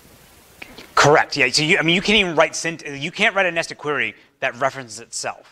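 A man lectures into a microphone, speaking clearly and with animation.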